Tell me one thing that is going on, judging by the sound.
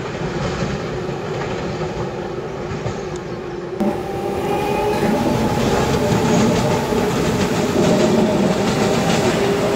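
An electric commuter train rolls along the track, heard from the cab.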